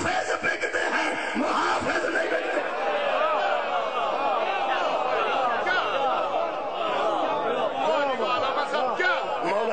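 A large crowd of men chants loudly together, heard through loudspeakers.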